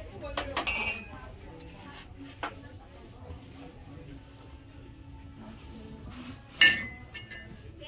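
Ceramic mugs clink and knock against each other as they are lifted from a shelf.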